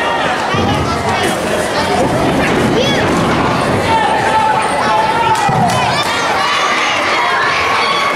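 A crowd cheers and shouts throughout a large echoing hall.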